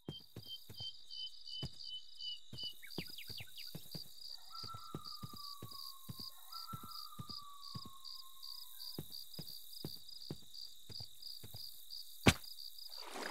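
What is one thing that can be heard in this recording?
Footsteps thud softly on grass at a steady walking pace.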